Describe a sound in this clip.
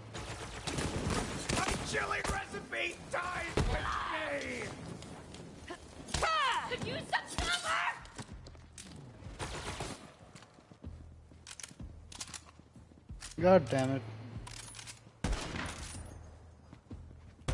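Guns fire in quick bursts of sharp shots.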